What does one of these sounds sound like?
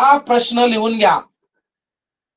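A man speaks clearly and close by.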